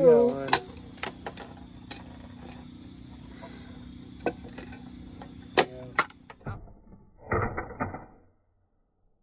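Plastic game pieces click and clatter.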